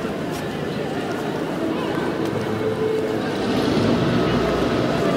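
Footsteps scuff on paving stones.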